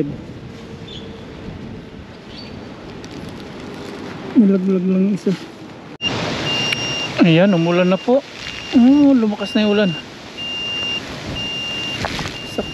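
Wind blows outdoors, rustling tree leaves.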